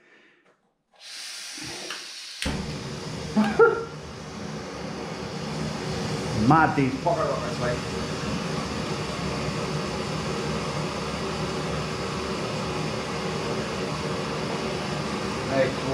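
A gas camping stove burner hisses and roars steadily.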